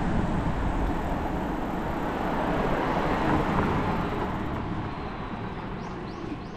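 A car drives past nearby on the street.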